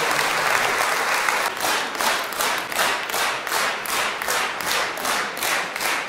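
A large crowd applauds in an echoing hall, the clapping turning into a steady rhythmic beat.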